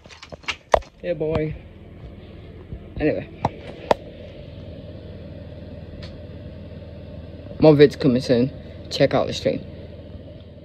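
A young man speaks quietly and close to the microphone.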